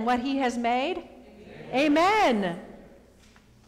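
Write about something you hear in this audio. A woman sings a few long notes in an echoing hall.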